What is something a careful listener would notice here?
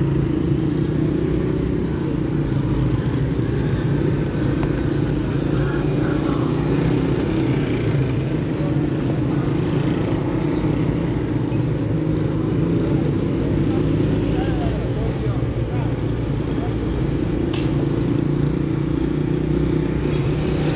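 Traffic rumbles along a busy street outdoors.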